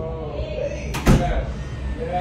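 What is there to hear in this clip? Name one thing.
A door shuts with a thud.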